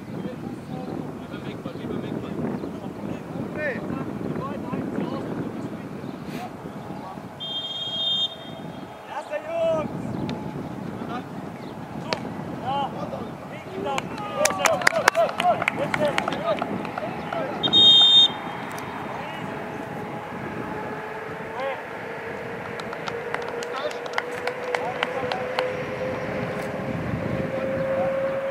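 Youth football players shout to each other across an open pitch.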